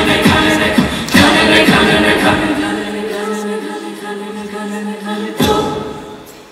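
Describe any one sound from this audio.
A group of young men and women sings together through microphones in a large hall.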